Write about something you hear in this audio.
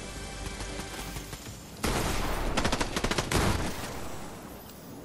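A treasure chest bursts open with a bright, shimmering chime.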